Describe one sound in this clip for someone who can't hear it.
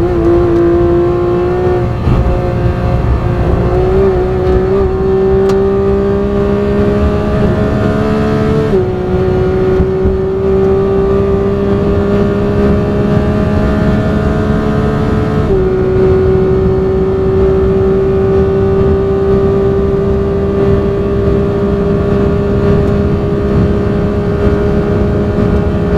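A racing car engine roars loudly, its pitch climbing steadily as it speeds up.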